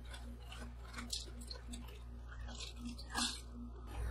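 Crisp chips tumble and clatter onto a metal pan.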